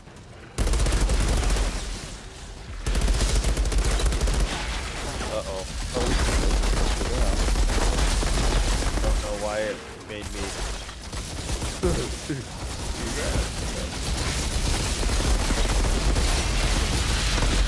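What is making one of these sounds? Rapid gunfire blasts and booms loudly.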